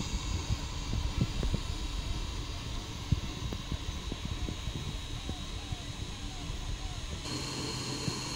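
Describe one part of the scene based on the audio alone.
A cooling fan hums steadily.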